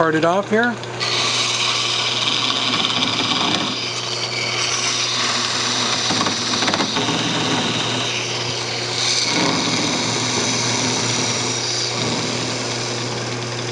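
A chisel scrapes against spinning wood with a hissing rasp.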